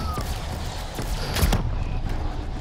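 A gun fires a sharp, loud shot.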